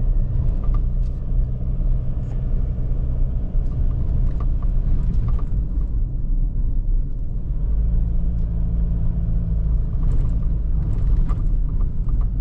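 A car body rattles and creaks over bumps.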